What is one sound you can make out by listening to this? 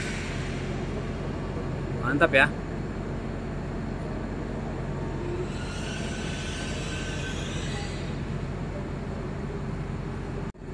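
A train glides slowly past with a steady low rumble.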